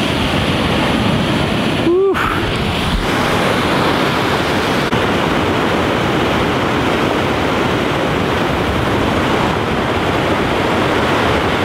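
Strong wind blows roughly across the microphone.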